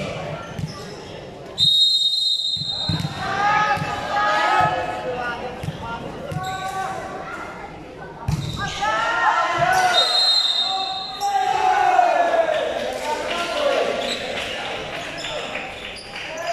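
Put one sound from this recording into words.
A volleyball is hit with dull thumps.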